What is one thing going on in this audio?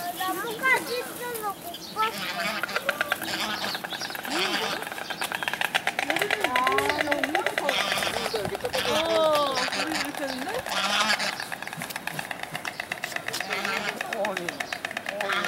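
Wings flap as cranes leap and dance.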